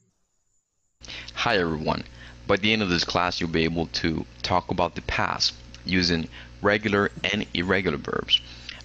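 A man speaks clearly and steadily through a recording.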